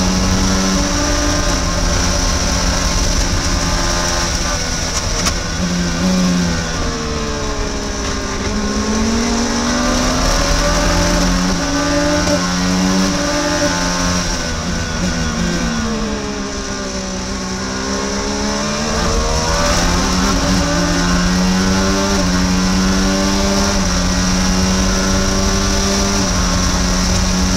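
A racing car engine screams close by, shifting gears and rising and falling in pitch as it brakes and accelerates.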